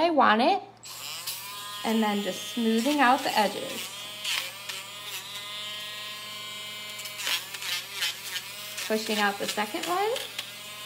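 Electric clippers buzz steadily.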